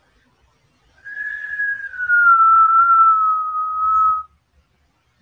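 A young man whistles a short falling note.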